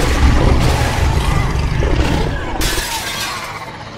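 Wooden boards crash and splinter.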